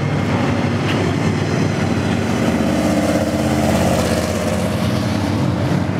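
A muscle car revs and roars as it drives past.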